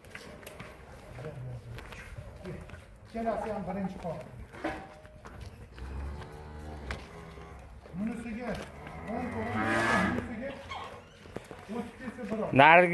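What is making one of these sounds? Cow hooves clop on concrete.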